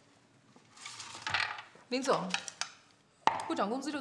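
A young woman speaks with irritation, close by.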